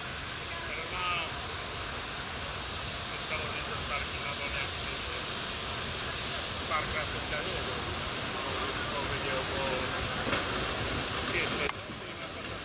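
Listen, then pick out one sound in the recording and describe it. A steam rack-railway locomotive chuffs as it pulls away into the distance.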